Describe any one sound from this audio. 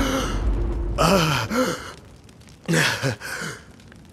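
A man speaks calmly and low, close by.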